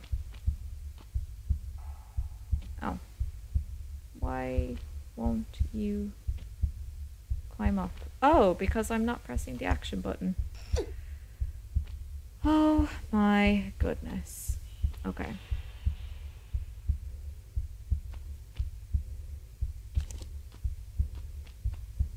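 Footsteps patter quickly and steadily on stone.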